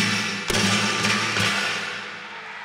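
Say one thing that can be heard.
A guitar strums sharp chords.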